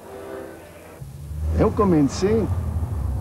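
A middle-aged man speaks calmly and close up.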